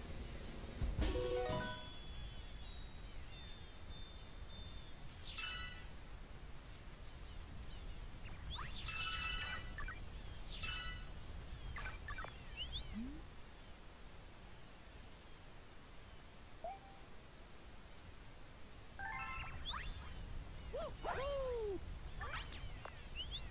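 Bright sparkling chimes ring out in quick runs.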